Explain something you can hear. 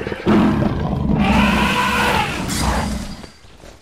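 An elephant trumpets loudly.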